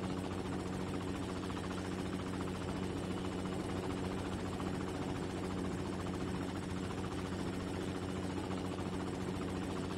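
A helicopter's rotor thumps and its engine drones steadily.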